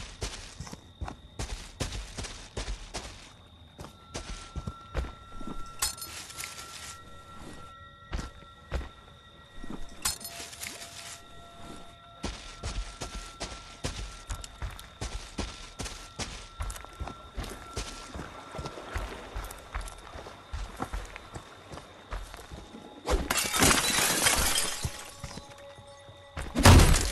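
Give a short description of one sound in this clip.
Heavy footsteps crunch slowly over leaves and twigs.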